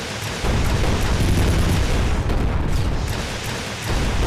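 A gun fires in rapid bursts with heavy booming blasts.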